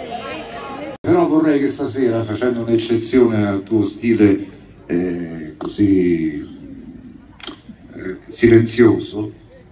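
A band plays live music through loudspeakers.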